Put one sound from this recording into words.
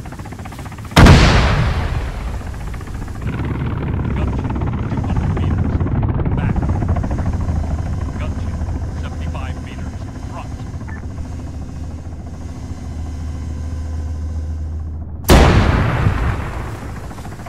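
A loud explosion booms and echoes away.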